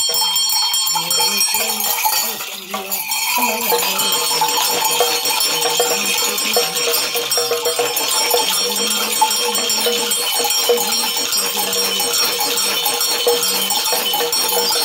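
Hand shakers rattle quickly and steadily.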